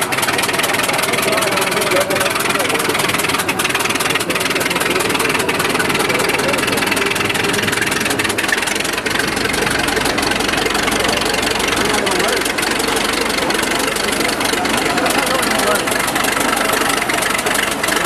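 An old tractor engine runs with a steady chugging rumble.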